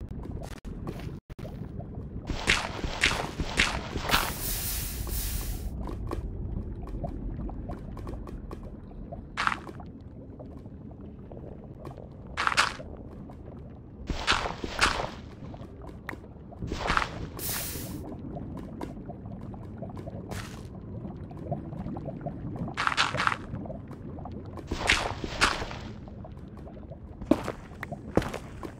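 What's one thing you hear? Lava pops and bubbles now and then.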